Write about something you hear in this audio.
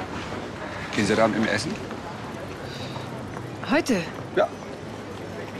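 A man speaks up, close by.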